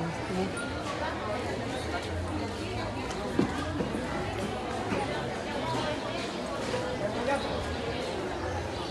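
A crowd of men and women chatter nearby and at a distance.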